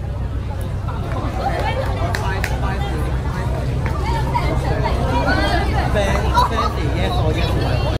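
A crowd of young people chatters nearby outdoors.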